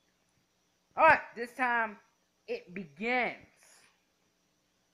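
A boy exclaims loudly with animation into a microphone.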